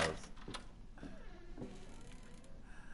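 A wooden door creaks as a hand pushes it.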